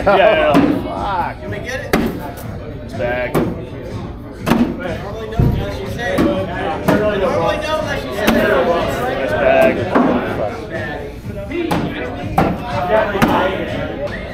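Bean bags thud onto a wooden board close by.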